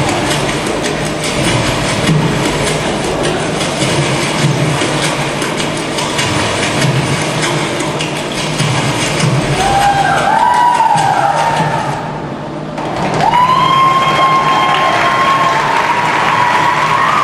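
Rhythmic music with drumming plays loudly over loudspeakers in a large hall.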